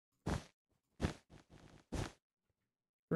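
Blocks are placed with short soft thuds.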